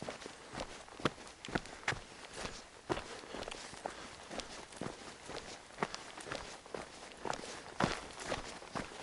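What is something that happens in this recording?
Footsteps tread along a soft, wet dirt path outdoors.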